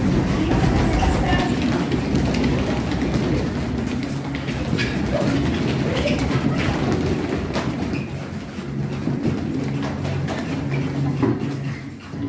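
Children chatter and laugh close by.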